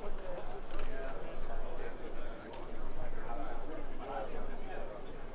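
A crowd of adults chatters nearby in a large echoing hall.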